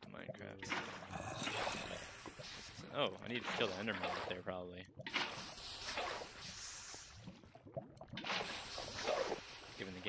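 Lava hisses and fizzes as water splashes over it.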